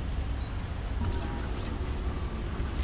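A handheld scanner hums and chirps while scanning.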